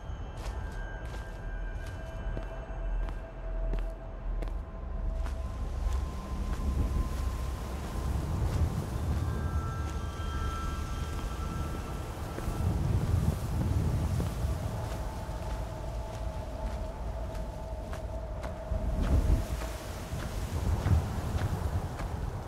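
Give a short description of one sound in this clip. Footsteps crunch through grass and leaves.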